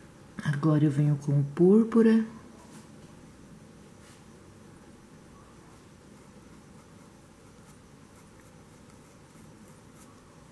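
A brush strokes softly across canvas.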